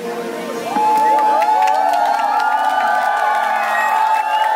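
Several people clap their hands.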